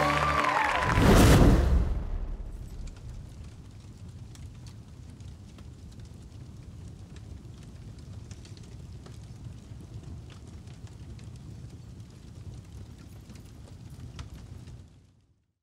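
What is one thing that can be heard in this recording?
A fire roars and crackles with a low rumble.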